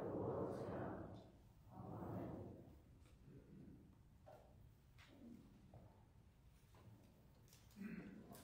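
A man speaks slowly through a microphone in a large echoing hall.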